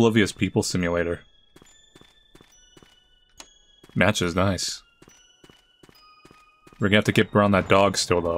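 Footsteps tap lightly on a floor.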